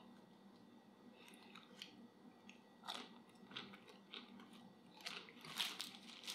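A young man chews and crunches food.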